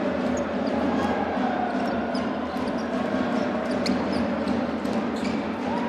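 Sneakers squeak sharply on a hardwood court in a large echoing hall.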